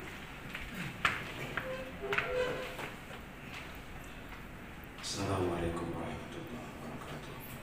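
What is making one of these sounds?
A crowd of men and women murmur softly in a room.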